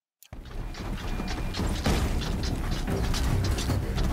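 A large mechanical creature growls and whirs nearby.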